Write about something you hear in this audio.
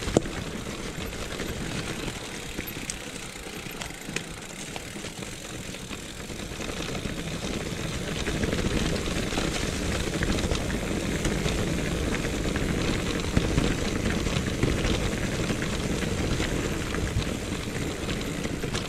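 Bicycle tyres crunch and rattle over a leaf-covered dirt trail.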